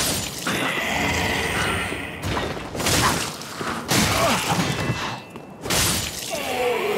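Steel swords clash and clang in quick strikes.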